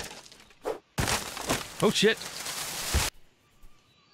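A palm tree falls and crashes to the ground.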